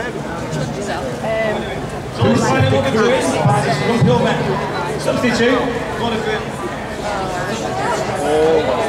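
A band plays music on guitars through loudspeakers outdoors.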